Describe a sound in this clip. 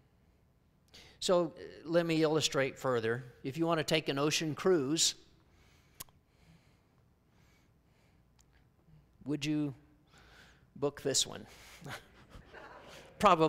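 A middle-aged man speaks calmly through a microphone in a large room, with pauses.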